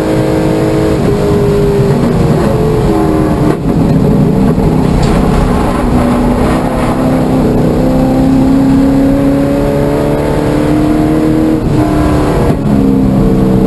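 The engine note dips sharply at each gear change.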